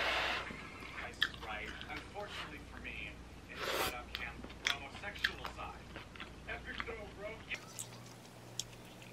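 A woman chews food with soft wet clicks close by.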